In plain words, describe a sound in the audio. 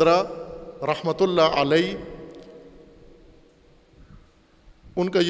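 An elderly man speaks with emphasis into a microphone, his voice carrying a slight echo.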